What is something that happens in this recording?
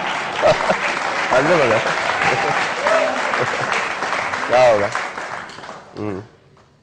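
A large audience laughs and cheers loudly.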